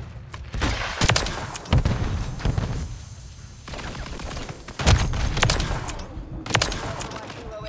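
Rifle shots fire in sharp, loud bursts.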